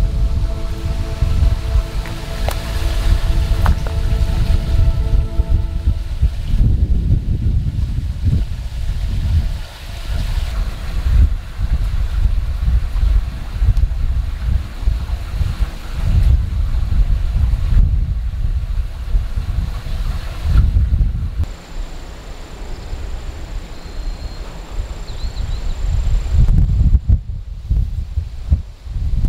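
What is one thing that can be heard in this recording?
Wind gusts outdoors, rumbling heavily.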